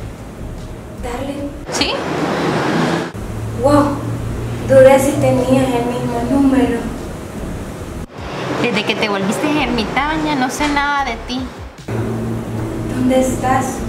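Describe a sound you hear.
A young woman talks on a phone nearby.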